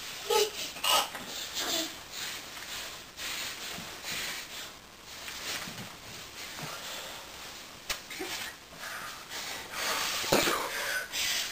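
A small child squeals and babbles nearby.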